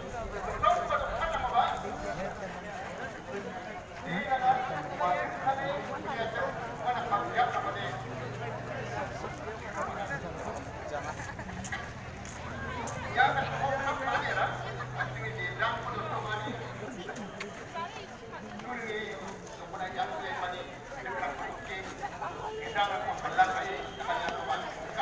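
A large crowd of people chatters and shouts outdoors close by.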